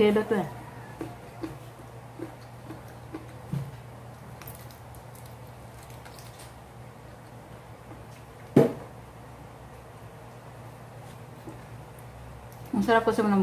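A woman chews and bites into food noisily.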